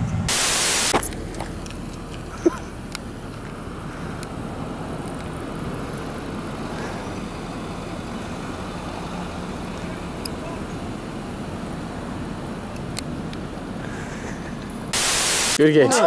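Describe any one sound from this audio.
Soda hisses as it sprays from a punctured can.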